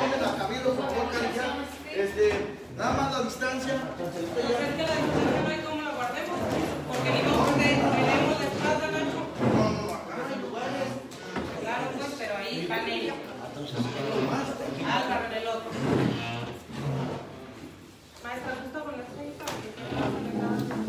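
Several adults talk over one another with animation in a small room that echoes.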